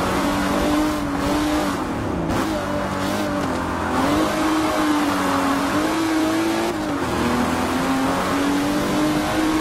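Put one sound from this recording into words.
A racing car engine roars, its pitch dropping on braking and climbing again as it shifts through the gears.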